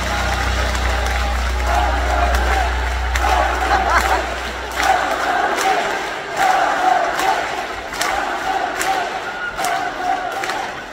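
A young woman sings through loudspeakers in a large echoing hall.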